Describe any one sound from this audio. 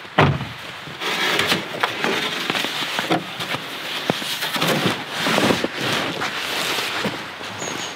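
A plastic sled scrapes across snow.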